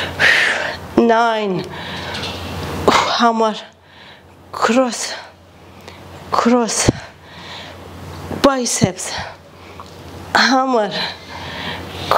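A young woman speaks in short bursts, close by, calling out to a listener.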